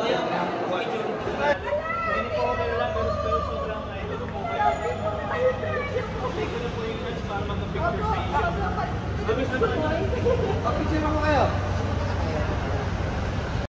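A crowd of young women and men chatter excitedly nearby, in an echoing hall.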